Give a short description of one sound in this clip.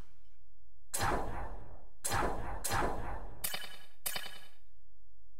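Menu selection clicks sound in quick succession.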